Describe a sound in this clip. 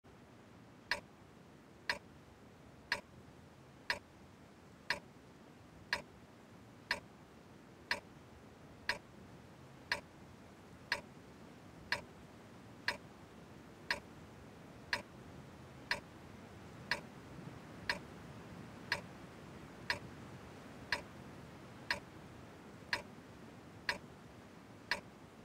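A countdown timer beeps once every second.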